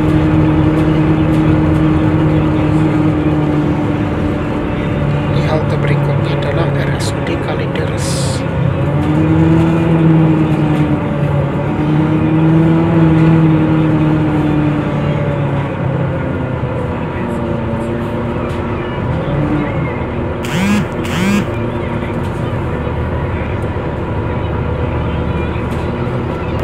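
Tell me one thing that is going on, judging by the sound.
The bus body rattles softly over the road.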